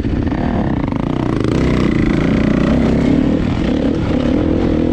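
Another dirt bike engine approaches and grows louder.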